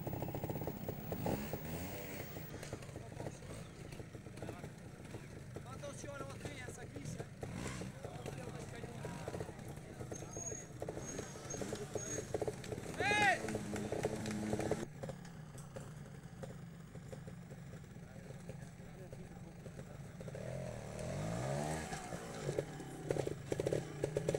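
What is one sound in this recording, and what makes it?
A motorcycle engine putters and revs nearby.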